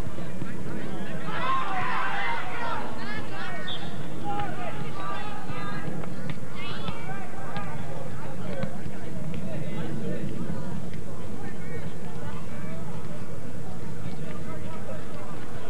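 A crowd of spectators chatters and cheers outdoors at a distance.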